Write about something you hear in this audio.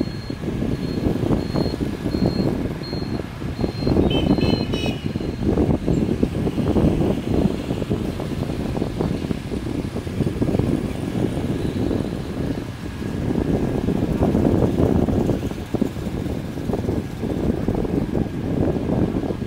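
Wind rumbles loudly against the microphone while riding.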